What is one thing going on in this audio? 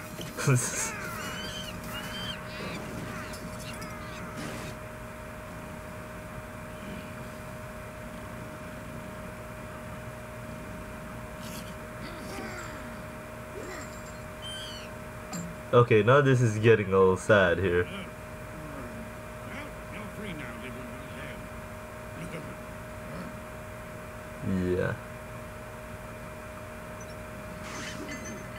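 A young man talks and laughs close to a microphone.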